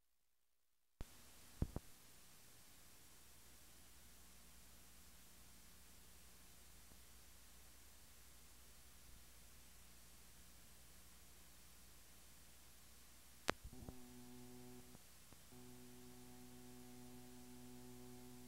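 A steady tape hiss plays.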